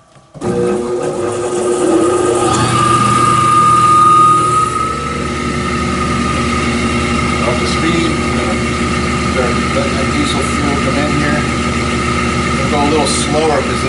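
An electric motor hums steadily close by.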